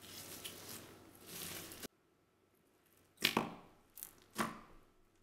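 Sticky slime squelches and crackles as fingers press into it.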